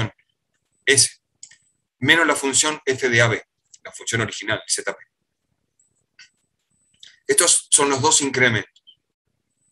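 A man speaks calmly through an online call, in short phrases with pauses.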